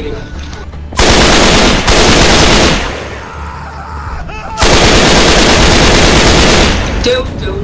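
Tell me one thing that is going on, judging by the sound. A rifle fires loud rapid bursts in an echoing room.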